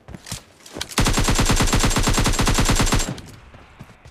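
An automatic rifle fires a long rapid burst, close by.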